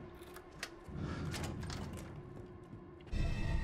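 A heavy metal lock clicks and clanks open.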